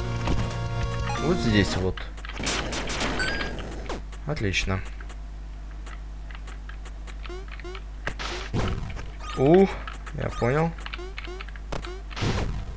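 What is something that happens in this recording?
Chiptune music plays steadily.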